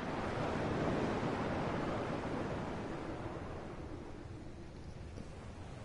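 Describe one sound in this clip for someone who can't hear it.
Gentle waves wash softly on water.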